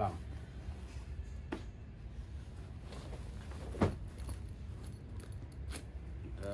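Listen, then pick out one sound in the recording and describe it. Heavy cloth rustles and shuffles.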